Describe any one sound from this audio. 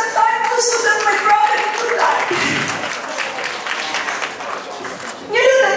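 A middle-aged woman sings into a microphone, heard through loudspeakers in a large room.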